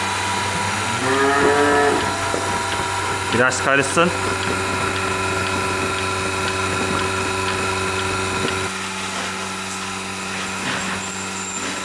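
A milking machine hums steadily.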